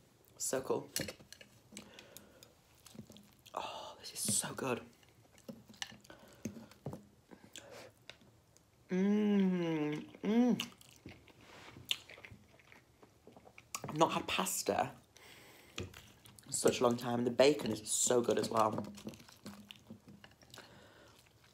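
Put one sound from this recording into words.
A young woman chews food with wet smacking sounds.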